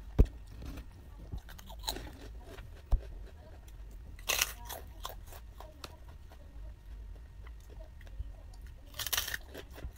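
A woman chews and crunches food.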